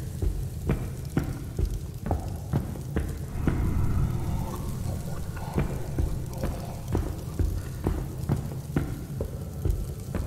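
Footsteps thud on a stone floor at a steady walking pace.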